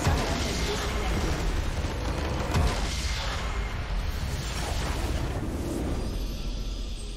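A large crystal structure explodes with a deep, rumbling blast.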